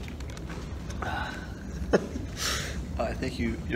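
A young man laughs softly close by.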